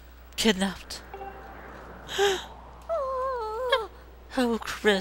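A young man exclaims in short, animated bursts.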